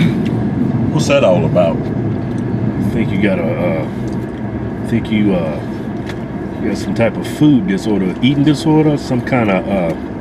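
A second man talks close by.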